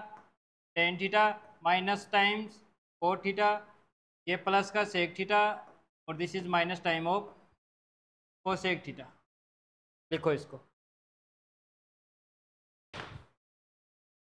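A man speaks clearly and steadily through a microphone, explaining in short bursts.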